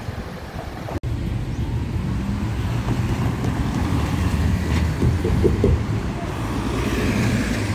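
Cars drive by on the road.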